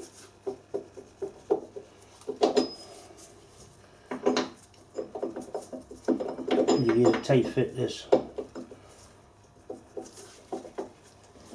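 Metal gears clink and rattle as they are fitted onto a shaft.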